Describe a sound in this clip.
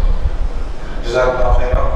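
A man begins speaking through a microphone and loudspeaker.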